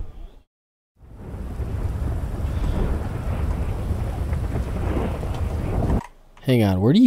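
Thunder rumbles loudly.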